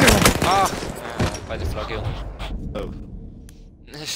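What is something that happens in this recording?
Explosions boom and rumble nearby.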